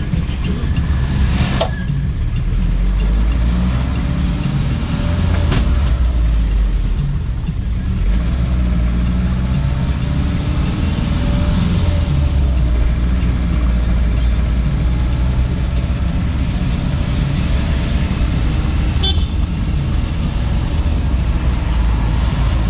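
Tyres roll on the road with a low rumble.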